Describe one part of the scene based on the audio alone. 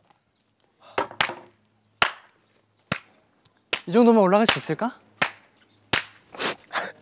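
A young man claps his hands a few times.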